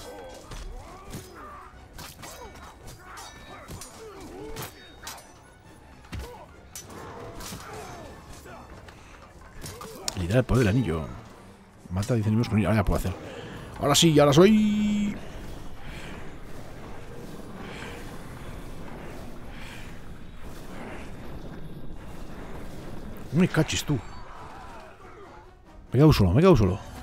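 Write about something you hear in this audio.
Blades clash and bodies thud in a fast fight.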